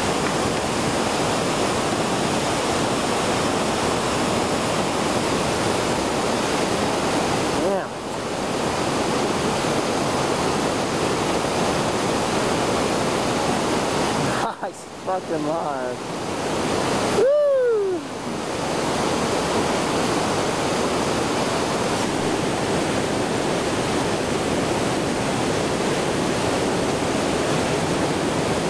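White water roars loudly and steadily close by.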